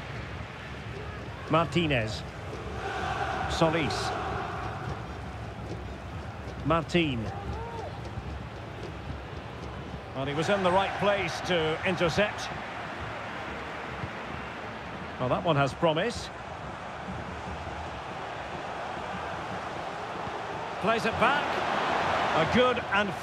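A large crowd murmurs and cheers steadily in a stadium, swelling toward the end.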